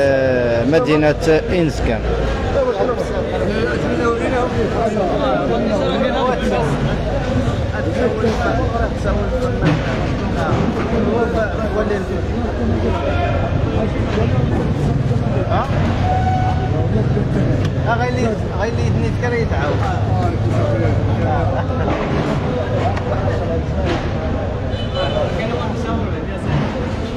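Other men chatter in the background.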